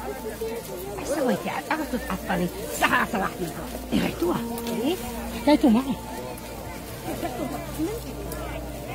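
Women talk to one another outdoors.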